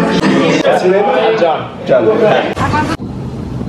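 A young man talks loudly and excitedly.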